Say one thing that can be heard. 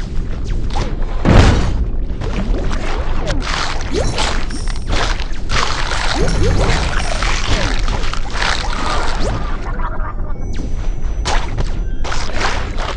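Bubbly underwater whooshes play throughout.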